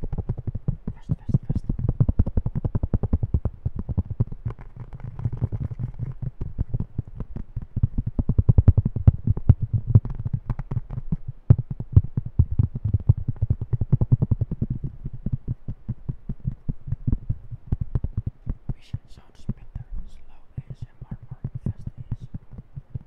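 Fingers tap and scratch rapidly on a plastic disc close to a microphone.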